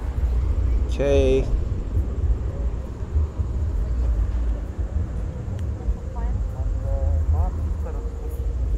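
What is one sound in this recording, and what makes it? A young man speaks briefly close to a microphone.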